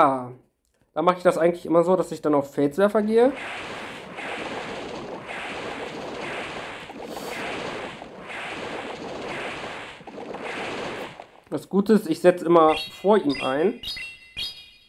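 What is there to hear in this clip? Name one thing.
A young man talks with animation into a headset microphone, close by.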